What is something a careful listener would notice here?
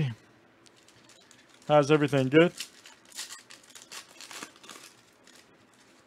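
A foil wrapper crinkles and rustles in the hands.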